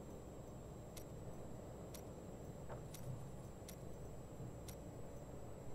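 Soft interface clicks tick a few times.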